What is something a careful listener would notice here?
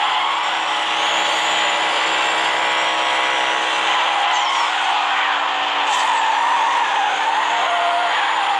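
Tyres screech as a car drifts around a bend.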